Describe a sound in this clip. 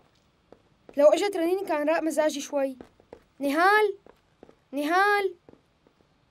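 A boy calls out loudly with animation.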